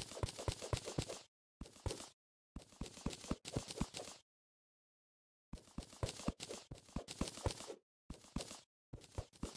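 A video game pickaxe chips at blocks with quick, repeated clicks in short bursts.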